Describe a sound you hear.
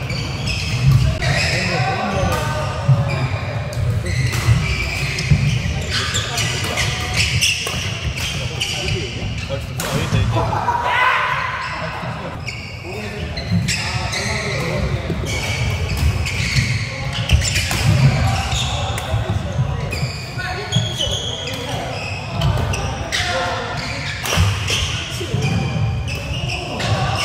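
Sounds echo through a large hall.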